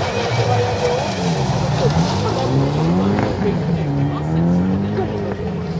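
A rally car engine revs up and down as the car drives past.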